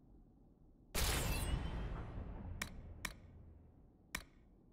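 A bright whooshing chime rings out and slowly fades.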